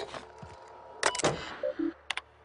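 A gun fires a quick burst of loud shots.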